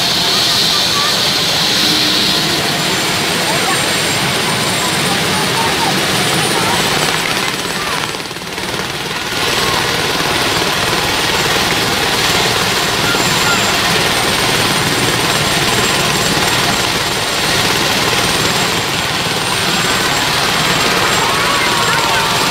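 A large crowd chatters and shouts loudly outdoors.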